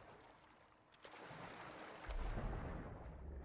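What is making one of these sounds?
Water splashes loudly as a body plunges in.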